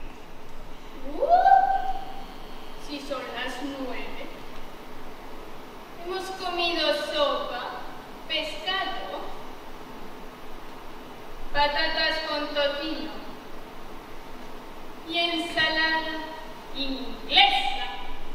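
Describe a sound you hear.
A young woman speaks expressively from a stage, heard from a distance in a large hall.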